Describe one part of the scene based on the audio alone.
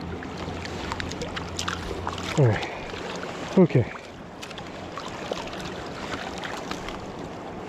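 Water splashes around a person wading in a river.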